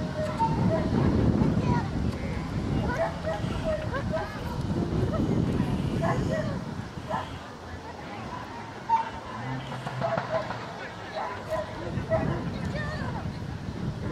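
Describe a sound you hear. Footsteps patter softly on grass as a woman jogs with a dog.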